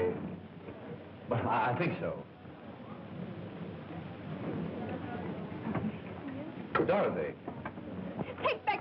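Diners murmur and chatter in the background.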